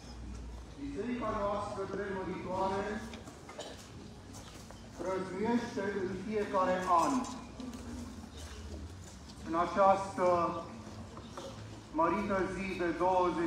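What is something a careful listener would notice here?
A man speaks loudly outdoors in short bursts.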